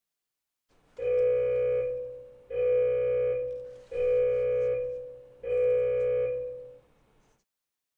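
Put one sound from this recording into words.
An electronic timer beeps four times loudly.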